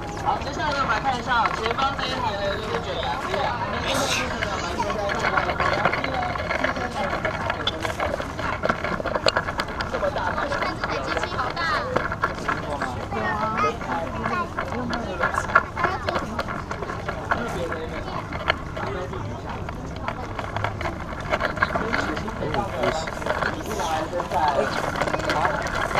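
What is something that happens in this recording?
A crowd of children and adults chatter nearby outdoors.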